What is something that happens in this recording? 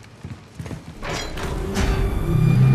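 A heavy metal door rumbles and grinds open.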